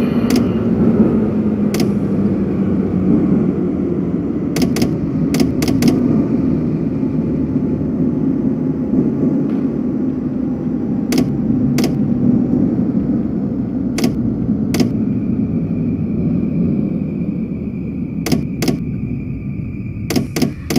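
Train wheels click sharply over rail joints.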